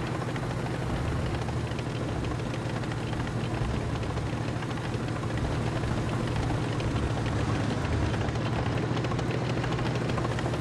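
Tank tracks clatter over the ground.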